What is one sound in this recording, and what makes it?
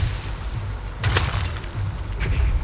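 A stone urn shatters with a sharp crack.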